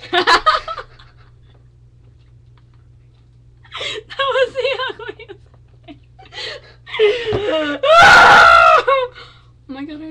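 Two young women laugh loudly close to a microphone.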